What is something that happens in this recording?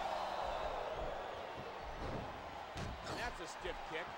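Bodies thud heavily on the ring mat.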